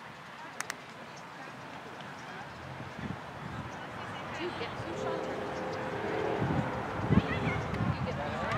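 Distant players call out across an open field.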